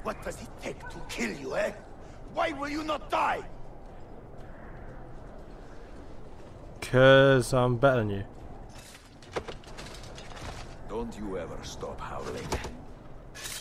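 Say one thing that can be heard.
A man speaks angrily, close by.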